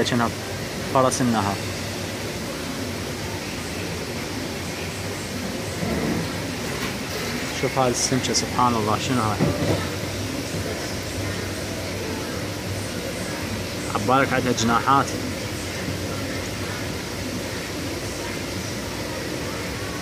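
Air bubbles rise and burble softly in water.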